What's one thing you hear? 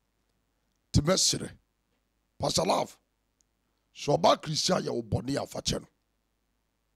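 A man speaks into a close microphone in short phrases.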